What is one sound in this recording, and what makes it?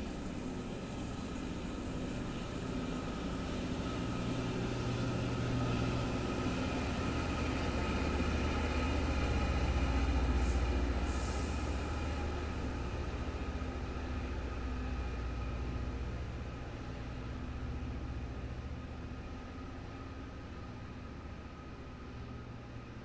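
Train wheels squeal and clank over the track.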